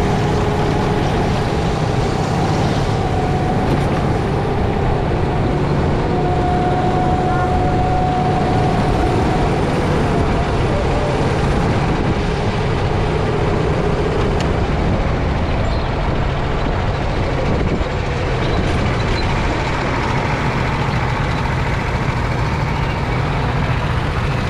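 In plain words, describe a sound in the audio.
A go-kart engine drones close by at full speed.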